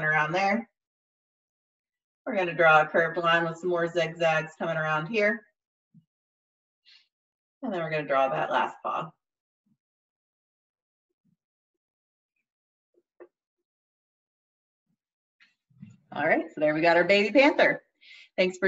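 A young woman talks calmly and clearly close to a microphone, in short bursts with pauses.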